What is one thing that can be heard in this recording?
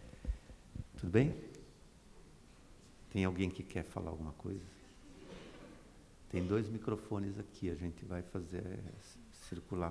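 A middle-aged man speaks calmly into a microphone, heard through loudspeakers.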